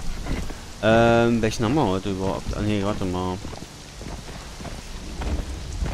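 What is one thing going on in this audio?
A horse gallops over soft sand with muffled hoofbeats.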